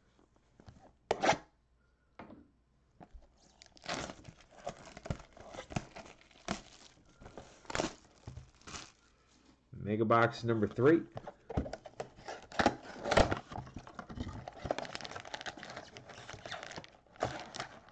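Gloved hands rustle and rub against a cardboard box.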